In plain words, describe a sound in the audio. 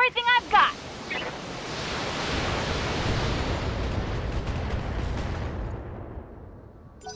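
A loud blast rumbles and slowly fades.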